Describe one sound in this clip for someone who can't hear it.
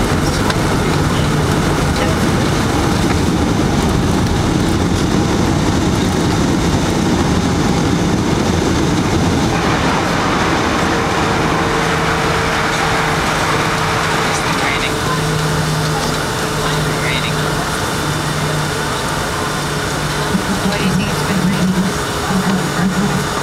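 Jet engines roar steadily from inside an aircraft cabin.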